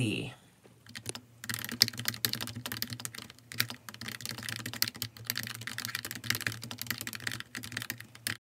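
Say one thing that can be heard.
Fingers tap rapidly on a clicky keyboard.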